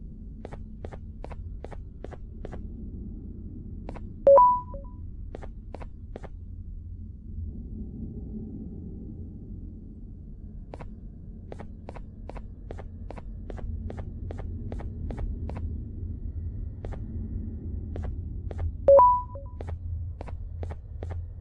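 Footsteps tap along at a brisk walking pace on a hard floor.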